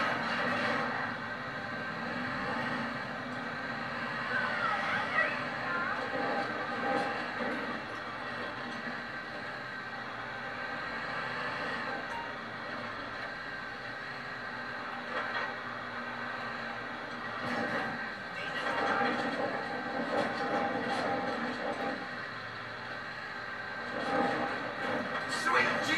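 A heavy truck engine rumbles steadily as it drives.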